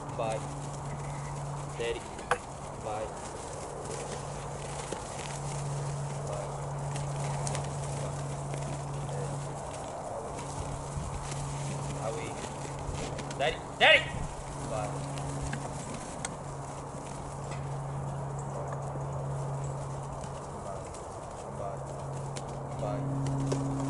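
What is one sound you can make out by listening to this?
A flock of sheep trots across frosty grass.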